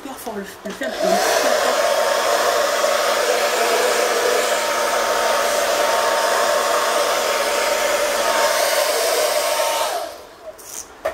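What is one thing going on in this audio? A hair dryer blows with a loud steady roar.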